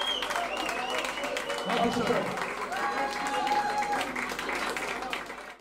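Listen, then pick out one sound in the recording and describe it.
A crowd cheers and claps loudly in a reverberant hall.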